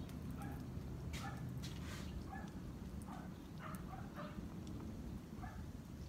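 Liquid pours from a bottle onto a hot griddle.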